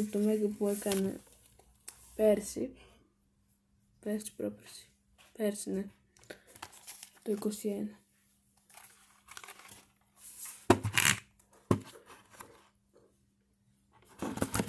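A young woman speaks close to the microphone in short bursts.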